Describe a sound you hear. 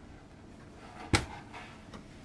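A wooden board knocks down on a table.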